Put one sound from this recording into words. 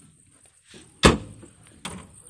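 A metal door slams shut.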